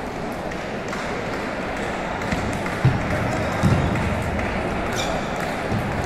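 A ping-pong ball clicks back and forth off paddles and a table.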